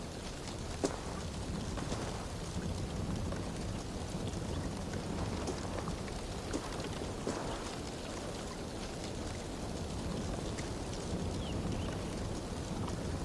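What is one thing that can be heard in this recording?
Footsteps crunch slowly on a dirt path.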